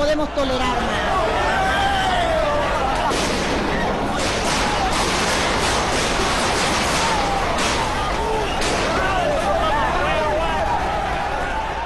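A crowd shouts and chants outdoors.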